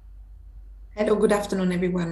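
A woman speaks through an online call microphone.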